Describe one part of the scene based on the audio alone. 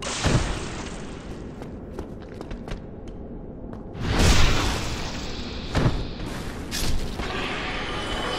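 Footsteps run on stone.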